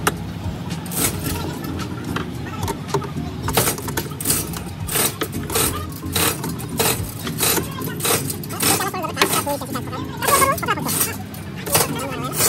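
A metal tool clicks and taps against a car door.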